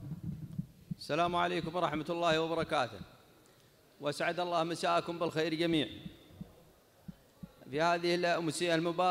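A man recites with strong feeling into a microphone, heard through loudspeakers.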